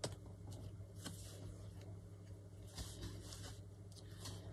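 A paper towel rustles as a hand dabs it.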